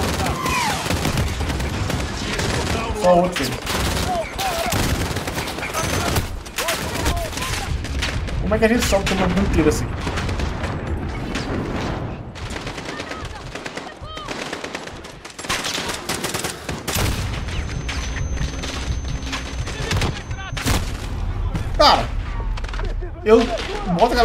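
Gunshots crack sharply, again and again.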